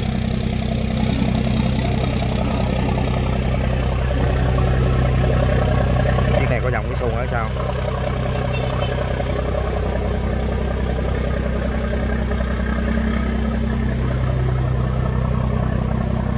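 A boat's diesel engine drones steadily nearby.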